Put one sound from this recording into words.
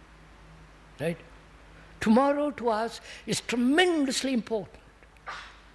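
An elderly man speaks slowly and calmly into a microphone.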